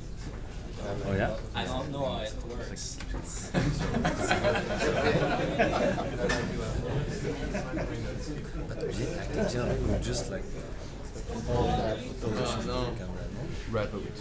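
Men talk nearby in a room.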